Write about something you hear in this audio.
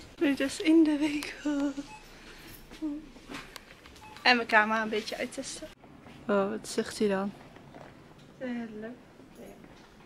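A young woman talks cheerfully close to a microphone.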